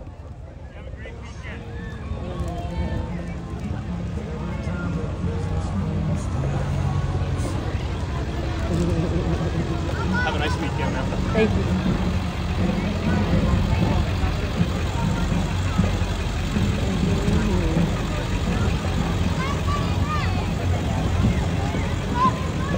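A crowd of people chatters and calls out along the street.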